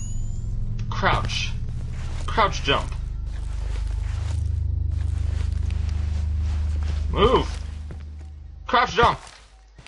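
A young man speaks quietly in short bursts through a microphone.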